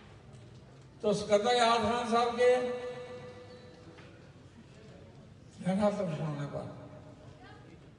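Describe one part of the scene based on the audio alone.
An elderly man speaks slowly into a microphone, heard through loudspeakers with some echo.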